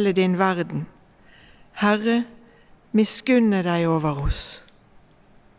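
An elderly woman speaks calmly into a microphone in a large echoing hall.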